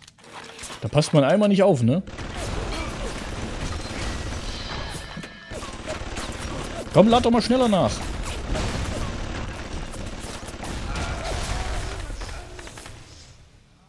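Grenades explode with deep booms.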